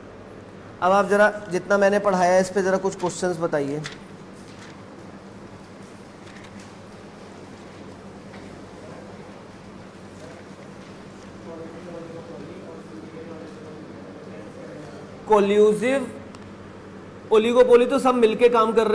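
A man speaks calmly and explains into a close microphone, pausing between phrases.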